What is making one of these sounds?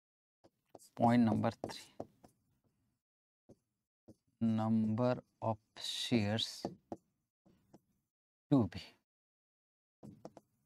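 A man speaks into a microphone in short bursts, explaining calmly.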